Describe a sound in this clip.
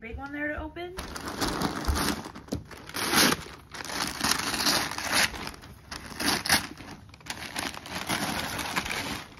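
Wrapping paper rustles and crinkles as a child tears it.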